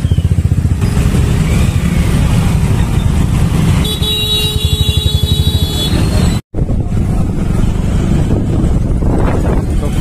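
Traffic engines hum and idle all around.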